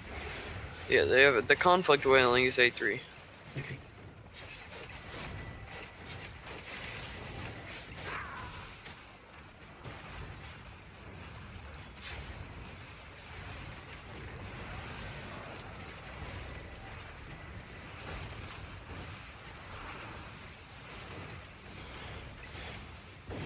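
Game spell effects crackle and boom in a battle.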